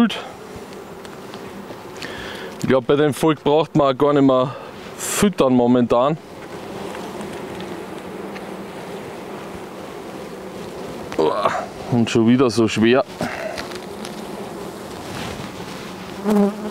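Bees buzz steadily.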